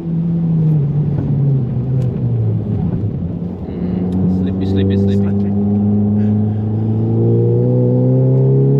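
A car engine drones loudly, dropping in pitch and then revving up again.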